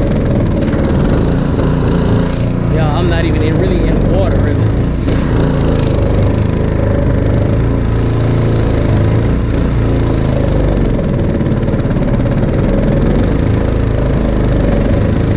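An outboard motor drones steadily up close.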